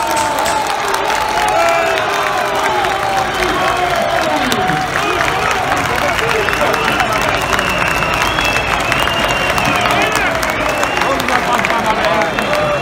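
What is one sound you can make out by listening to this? A crowd of men cheers and shouts loudly outdoors.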